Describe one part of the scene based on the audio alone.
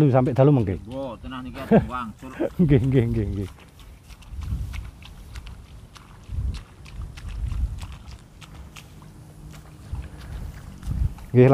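Water splashes softly as seedlings are pushed into mud.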